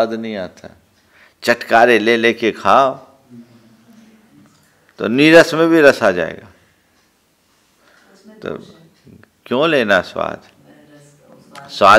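An elderly man speaks calmly and close into a microphone, in short phrases with pauses.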